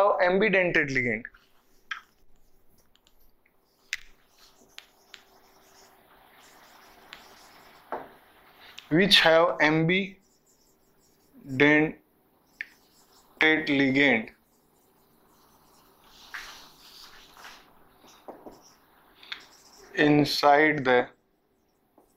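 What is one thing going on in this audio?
A man speaks calmly in short phrases, close by.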